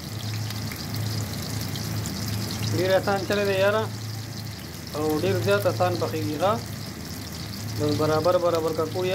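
Patties sizzle and crackle in hot oil.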